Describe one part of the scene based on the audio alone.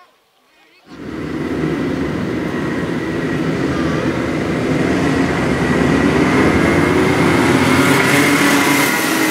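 Many kart engines roar loudly as the race starts and grows louder.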